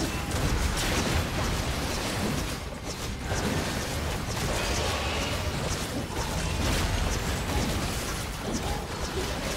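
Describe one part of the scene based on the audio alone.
Game spell effects crackle and burst in a fight.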